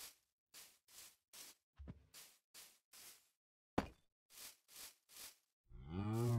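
Footsteps tread softly on grass in a steady rhythm.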